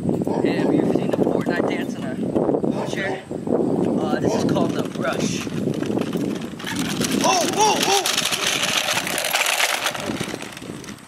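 Wheelchair wheels roll and rattle over grass.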